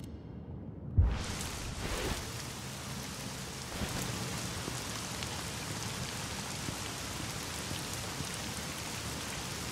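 A soft outdoor breeze rustles through leaves.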